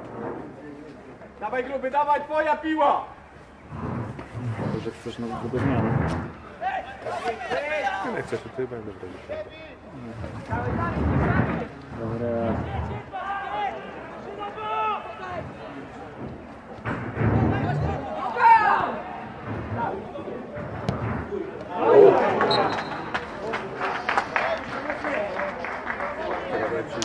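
Young men shout to one another in the open air, some distance away.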